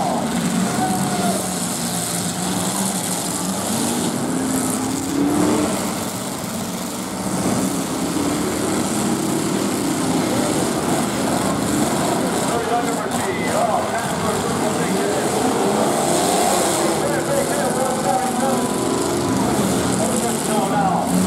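A crowd cheers and shouts close by.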